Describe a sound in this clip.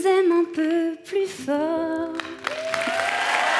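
A young woman speaks in a high, playful puppet voice through a microphone.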